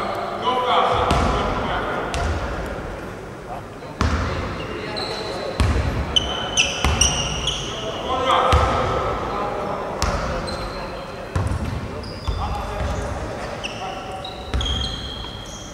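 Players' feet thud on a wooden court.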